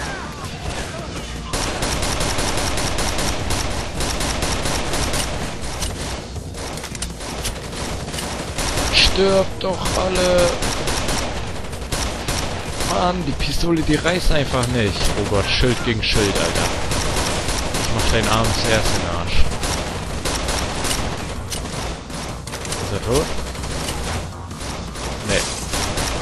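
Rifle shots crack one at a time.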